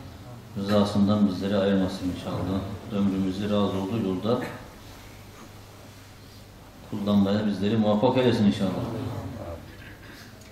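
An elderly man speaks calmly into a microphone, reading out slowly.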